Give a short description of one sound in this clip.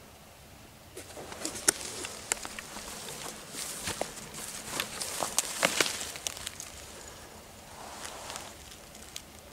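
Leaves rustle and brush close by as plants are pushed aside.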